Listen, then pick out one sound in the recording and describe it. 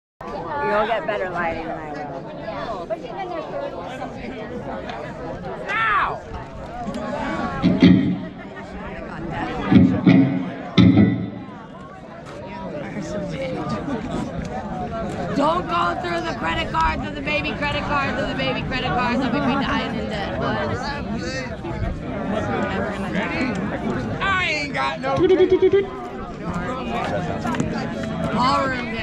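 An amplified guitar strums.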